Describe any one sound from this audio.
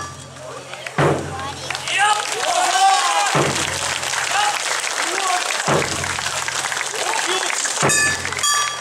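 A group of dancers shout together in loud, lively chants.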